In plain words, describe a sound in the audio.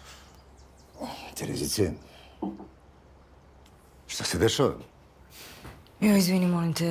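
A woman speaks wearily nearby.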